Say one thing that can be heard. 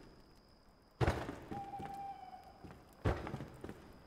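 A hammer knocks on wood.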